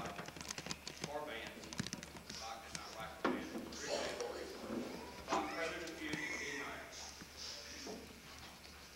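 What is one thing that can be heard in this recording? A man reads out aloud to an audience in a large hall.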